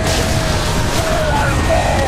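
An electric whip crackles and hums.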